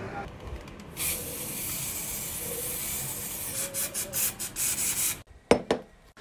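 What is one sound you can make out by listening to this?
A spray can hisses steadily.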